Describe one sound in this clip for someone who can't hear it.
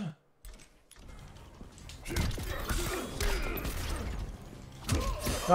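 Fighters grunt and blows thud in a fighting game.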